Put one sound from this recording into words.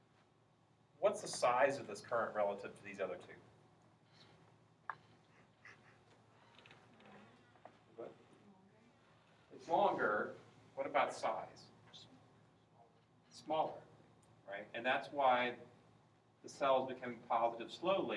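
A young man lectures in a loud, animated voice.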